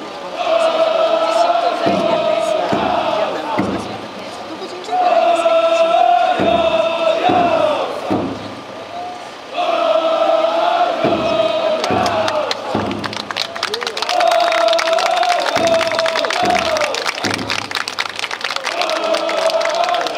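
A man sings loudly over a loudspeaker in long, drawn-out phrases.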